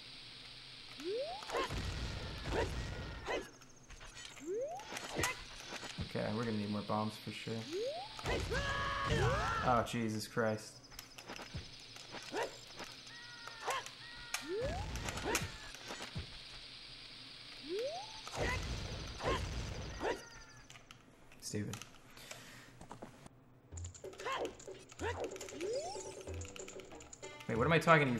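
Video game sound effects chime, whoosh and rumble.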